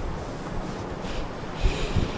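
A man blows his nose into a cloth.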